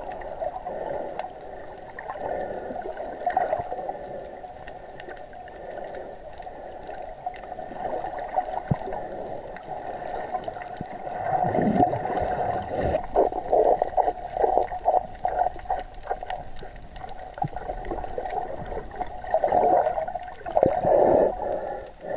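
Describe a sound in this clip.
Water swirls and bubbles close by, muffled as if heard underwater.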